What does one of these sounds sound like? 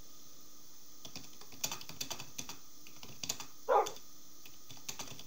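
Keyboard keys click in quick bursts.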